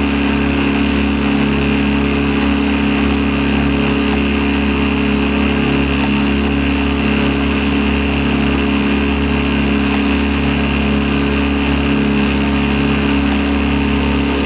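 Water splashes and laps against a moving boat.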